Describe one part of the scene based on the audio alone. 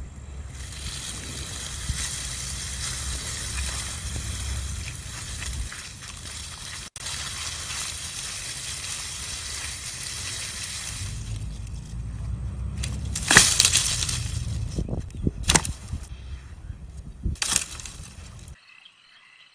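Footsteps rustle through dry grass and leaves.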